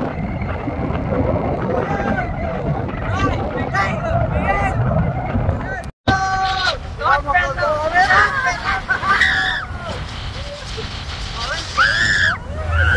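Young men laugh and shout with excitement close by.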